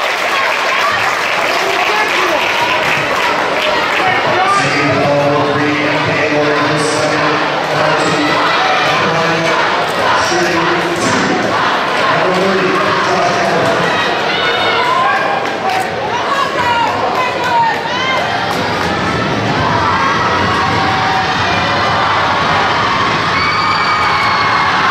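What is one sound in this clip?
A large crowd cheers and chatters in a big echoing gym.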